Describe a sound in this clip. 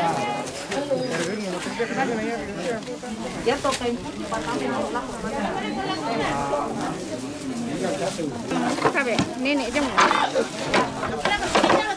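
A crowd of men and women talk over one another outdoors close by.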